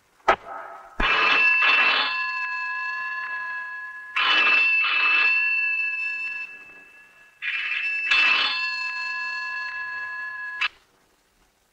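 A telephone rings loudly in bursts.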